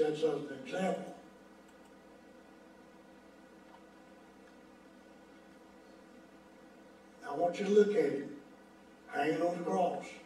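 An elderly man preaches with emphasis into a microphone, with long pauses, in an echoing room.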